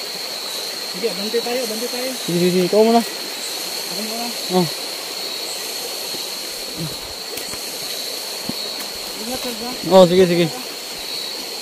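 A young man speaks loudly and with animation close by.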